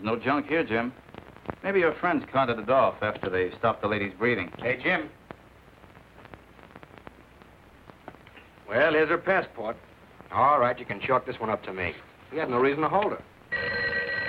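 Adult men talk calmly in turn, close by.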